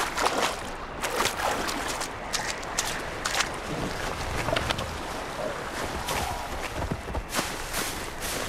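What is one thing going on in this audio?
Footsteps rustle through dry grass and leaves.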